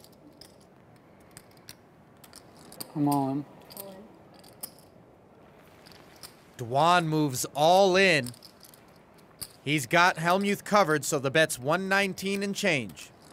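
Poker chips click and clatter together.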